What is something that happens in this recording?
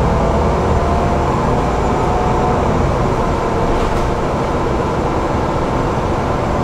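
The bus body rattles and rumbles over the road.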